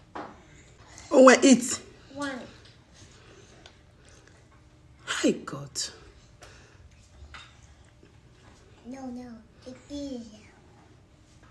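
A small child babbles and squeals close by.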